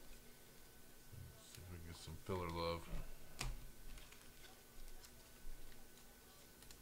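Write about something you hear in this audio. Trading cards slide and rustle between fingers.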